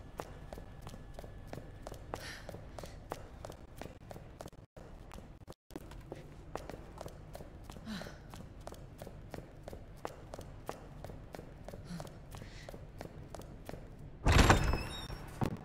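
Footsteps run on a stone floor.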